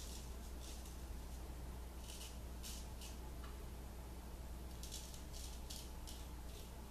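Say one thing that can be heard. A razor scrapes in short strokes across stubble close by.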